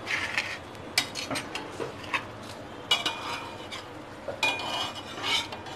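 A metal spatula scrapes and clatters against an iron pan.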